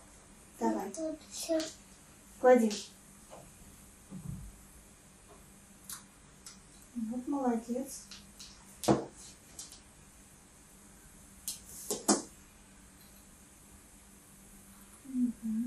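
A woman speaks calmly and gently nearby.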